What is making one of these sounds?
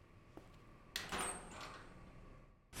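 A metal locker door creaks open.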